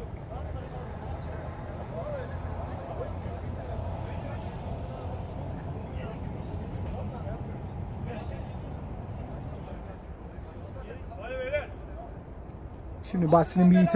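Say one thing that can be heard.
Young men call out to each other from a distance.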